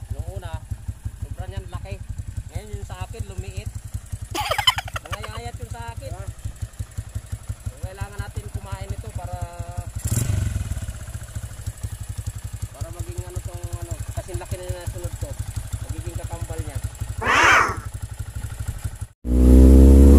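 A motorcycle engine idles with a steady low putter.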